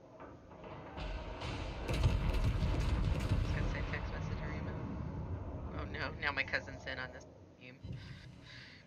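Heavy naval guns fire with deep, rumbling booms.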